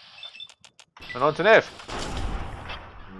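A heavy metal-armoured punch lands with a loud thud.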